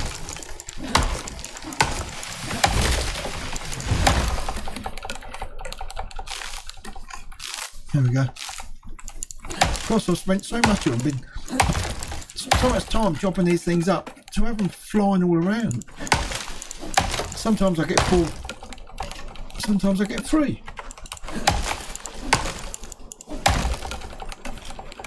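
An axe chops into wood with sharp, repeated knocks.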